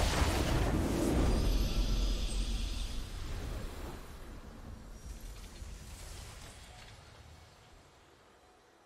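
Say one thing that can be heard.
A triumphant fanfare swells and slowly fades.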